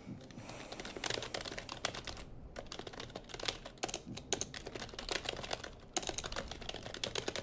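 Keyboard keys click rapidly as someone types.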